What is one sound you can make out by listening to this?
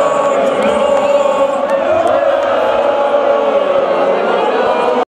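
A woman sings loudly through a microphone over a loudspeaker system.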